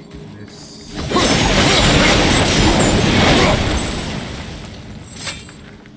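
Brambles burst into flame and roar as they burn.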